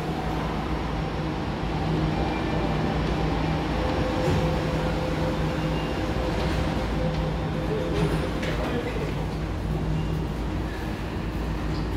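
A train hums steadily while standing at the platform.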